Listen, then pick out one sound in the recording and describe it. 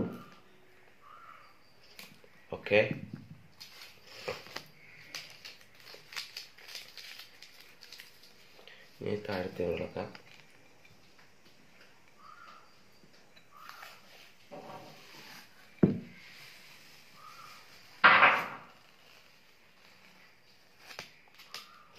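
Paper tape rustles and crinkles as hands peel it.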